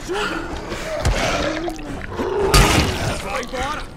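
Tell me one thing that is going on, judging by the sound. Heavy blows thud into a body.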